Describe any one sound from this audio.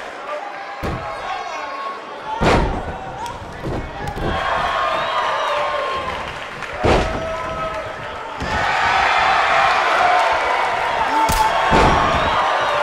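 Heavy bodies slam onto a wrestling mat with loud thuds.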